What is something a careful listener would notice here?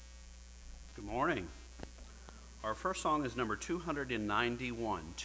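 A middle-aged man speaks into a microphone over a loudspeaker in an echoing hall.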